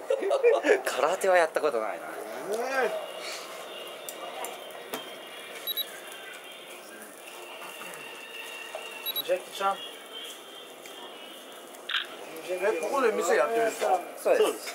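Meat sizzles softly on a grill.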